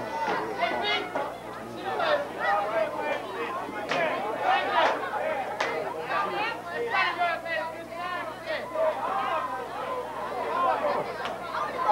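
A crowd of men and women chatters and calls out outdoors.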